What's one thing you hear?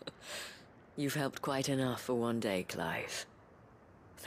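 A young woman speaks gently and warmly.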